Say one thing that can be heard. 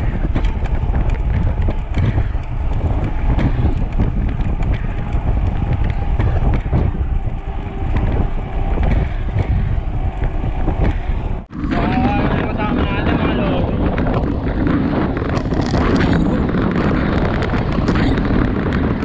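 Wind rushes and buffets loudly as a bicycle rides fast.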